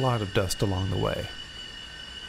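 A steam locomotive whistle blows loudly.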